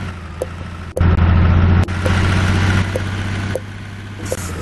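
A truck's engine roars louder from inside the cab.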